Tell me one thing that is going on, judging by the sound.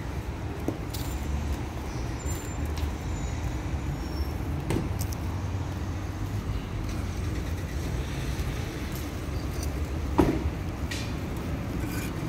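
Paving stones clack and knock as they are stacked.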